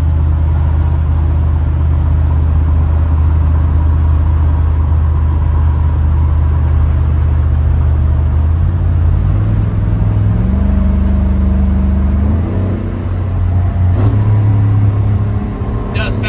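Wind rushes past an open car window.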